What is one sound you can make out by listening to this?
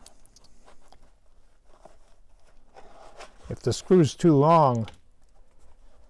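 Hands rustle and handle a stiff shoe.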